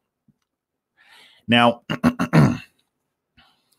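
A man speaks up close into a microphone in short, emphatic bursts.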